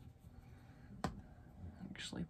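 A plastic bottle is set down on a table with a light knock.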